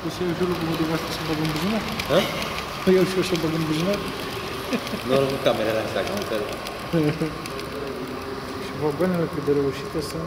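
A model train rumbles softly along its track.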